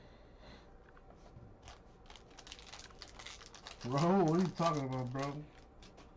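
A foil pack tears open and crinkles.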